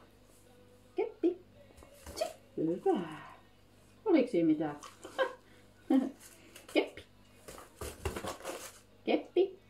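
A woman speaks to a dog up close.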